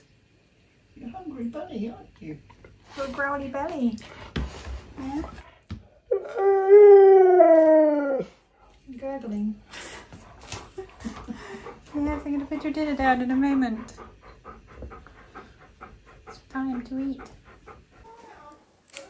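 A husky grumbles and yowls in a wavering, talking voice close by.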